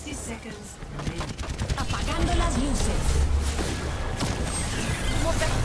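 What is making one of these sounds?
Rapid gunfire crackles and bangs.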